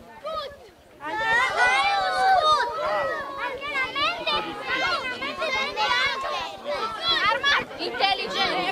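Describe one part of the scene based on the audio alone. Children chatter and call out nearby.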